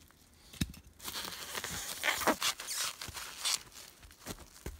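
Plastic sheeting crinkles and rustles as it is handled.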